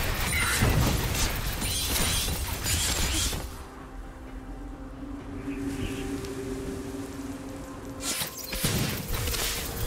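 Magic spells whoosh and crackle in a fast clash of game combat.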